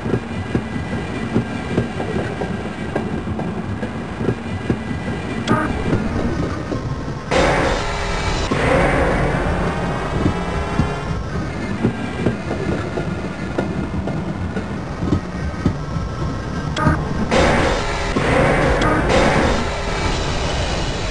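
A small rail car rumbles and clatters steadily along a track.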